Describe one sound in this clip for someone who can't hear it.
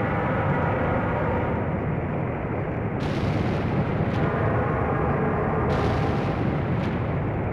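A low, muffled underwater rumble drones steadily.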